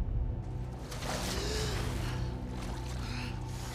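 A young woman gasps for breath as she breaks the surface.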